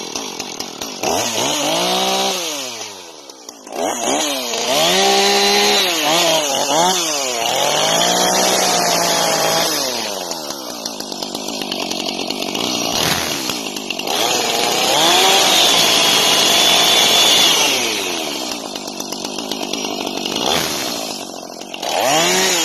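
A chainsaw engine revs loudly, rising and falling in pitch.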